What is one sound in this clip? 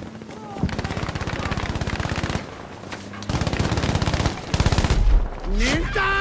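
A machine gun fires in rapid bursts close by.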